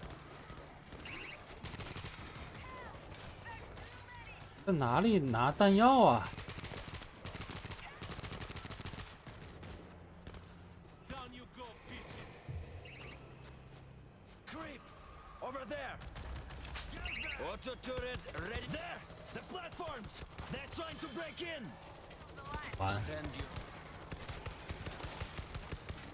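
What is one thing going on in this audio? Footsteps run quickly over snow.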